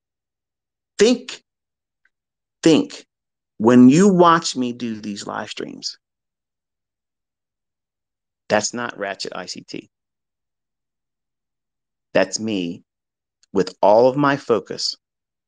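A man speaks close up in short phrases with long pauses.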